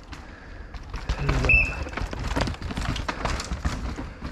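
A mountain bike rattles and skids over a rough dirt track as it passes close by.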